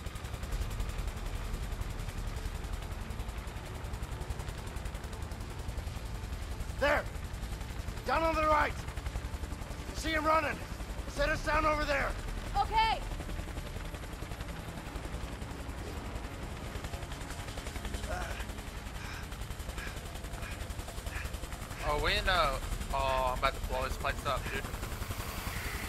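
A helicopter's rotor thrums steadily close by.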